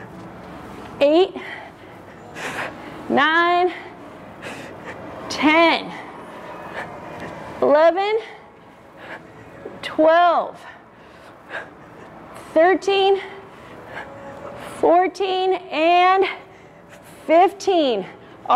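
A young woman lets out short, strained sounds of effort again and again, close by.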